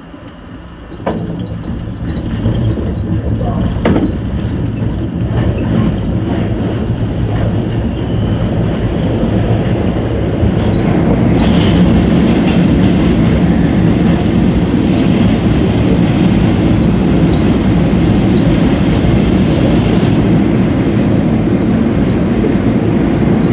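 A subway train rumbles loudly as it rushes into an echoing station.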